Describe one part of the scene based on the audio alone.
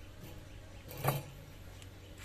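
A wooden frame knocks against a metal extractor basket.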